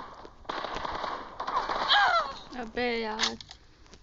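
Rifle shots crack in a quick burst.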